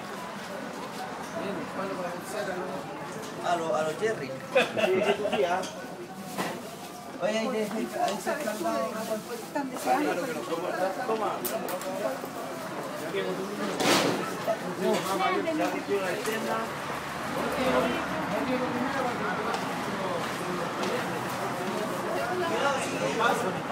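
A crowd of men and women chatter and talk loudly close by.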